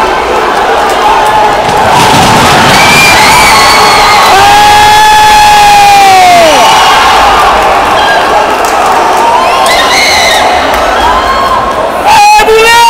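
A large crowd cheers and shouts loudly in an echoing arena.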